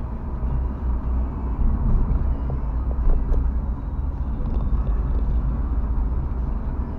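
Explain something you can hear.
A car engine hums low and steady from inside the car as it drives.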